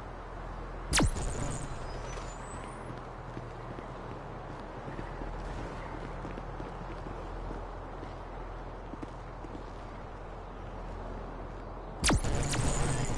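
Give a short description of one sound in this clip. A pistol fires a single loud shot with a short echo.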